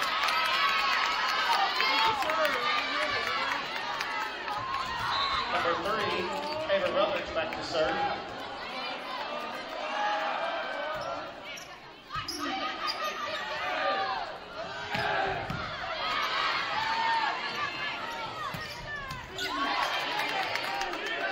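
Spectators cheer and chatter in a large echoing gym.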